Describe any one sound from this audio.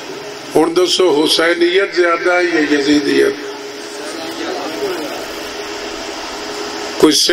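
A man speaks emotionally into a microphone over loudspeakers.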